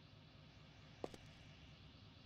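A wooden chest lid clicks open.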